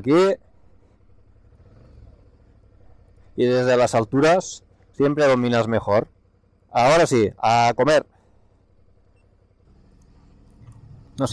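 A motorcycle engine idles with a low rumble.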